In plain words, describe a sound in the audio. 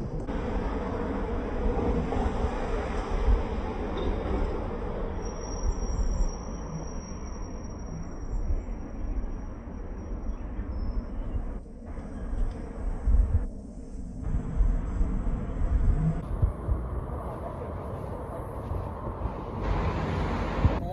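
Wind rumbles and gusts outdoors.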